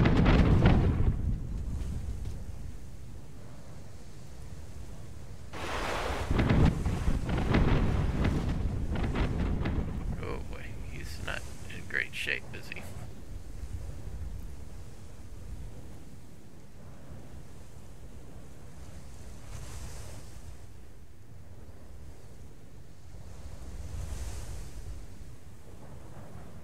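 Sea waves wash and lap steadily.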